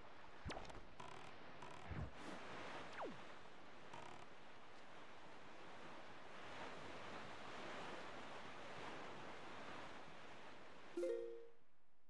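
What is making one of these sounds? Water rushes steadily under a sailing boat.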